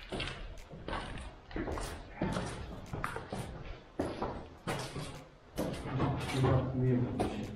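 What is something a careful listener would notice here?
Footsteps crunch on gritty concrete stairs.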